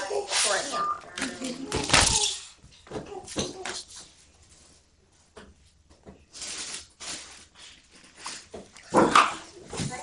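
Hands bump and rub close against the recording device.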